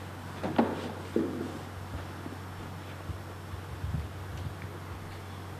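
Footsteps thud softly on carpet.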